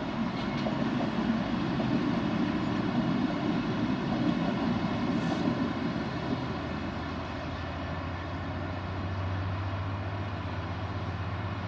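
Freight wagons rattle and clank over the rails.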